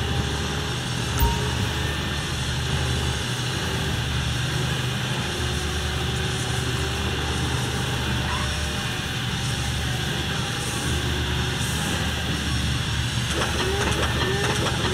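A heavy diesel engine rumbles steadily as a container handler drives slowly.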